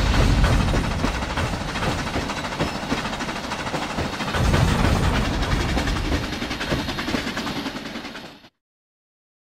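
A steam locomotive chugs and puffs steadily.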